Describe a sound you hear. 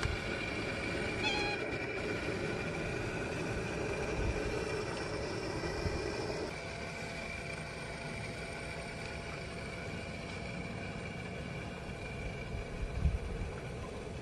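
A small model boat's electric motor whirs steadily across the water.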